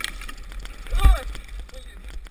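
A motorbike crashes through ice with a heavy thud.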